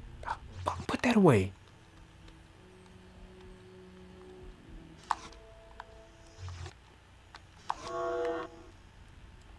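Short electronic tones chime as a menu is scrolled.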